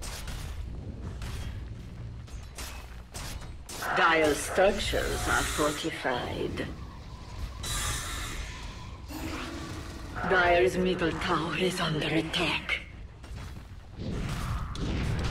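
Fantasy battle sounds clash and crackle, with sharp hits and magical bursts.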